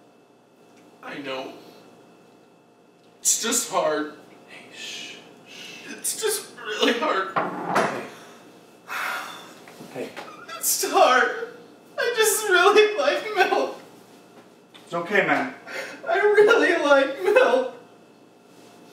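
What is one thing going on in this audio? A young man sobs and cries close by.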